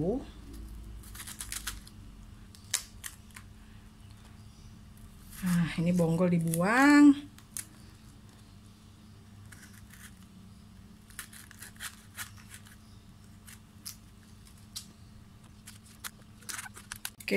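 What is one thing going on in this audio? A knife crunches through crisp cabbage leaves.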